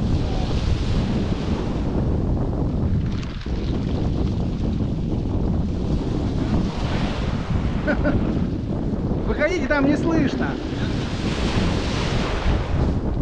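Small waves wash and hiss over pebbles.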